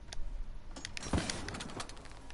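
A wooden crate creaks open.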